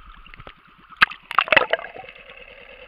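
Water splashes loudly at the surface.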